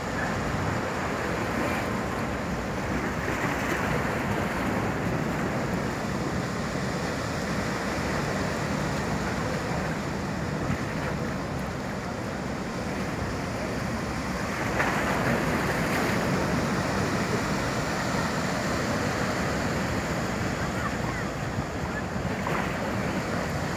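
A ferry's engines rumble loudly close by.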